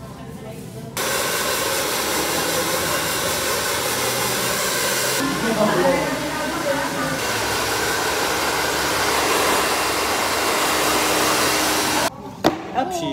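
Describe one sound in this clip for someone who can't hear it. A hair dryer blows with a steady roar.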